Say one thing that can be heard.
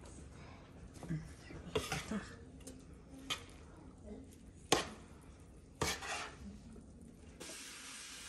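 Rice rustles as it is stirred in a pot.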